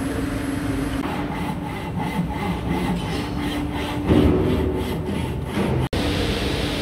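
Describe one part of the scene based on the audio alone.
A hand saw cuts back and forth through wood.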